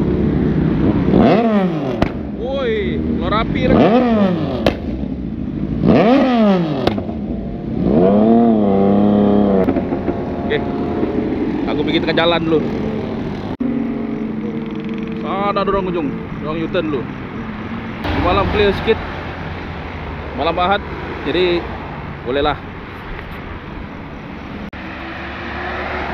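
Motorcycle engines rev loudly, rising and falling in pitch.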